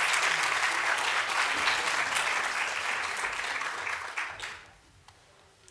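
An audience applauds in a large echoing hall and the clapping fades away.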